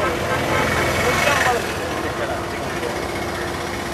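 An auto rickshaw engine putters by.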